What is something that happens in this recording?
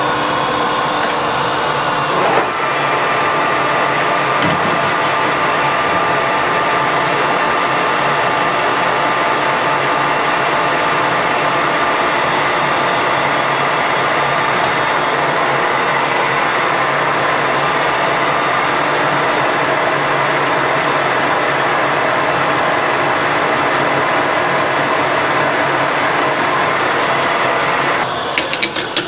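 A metal lathe runs with a steady whirring hum.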